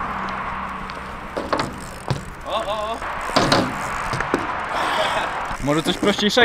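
Small bicycle tyres roll and hum on smooth concrete.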